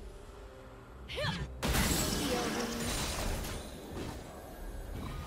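Magical spell effects whoosh and crackle loudly.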